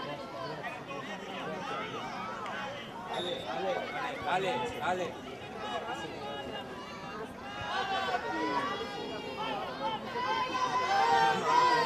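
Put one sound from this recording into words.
Adult men call out instructions from the sideline.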